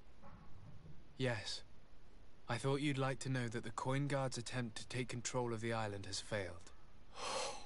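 A second man answers calmly in a deep voice.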